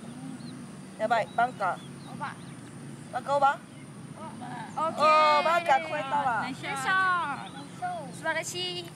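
Young girls cheer and call out excitedly nearby.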